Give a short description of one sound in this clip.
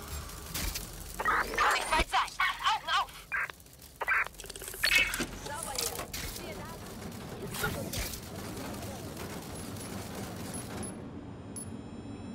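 A small robot's legs patter and click as it scuttles along.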